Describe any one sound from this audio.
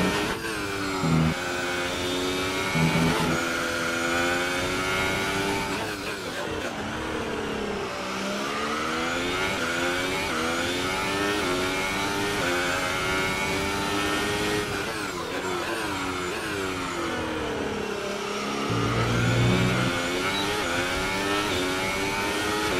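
A racing car engine screams, rising and falling in pitch as the gears shift.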